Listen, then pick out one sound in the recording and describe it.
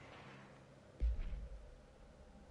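A game menu opens with a low thud.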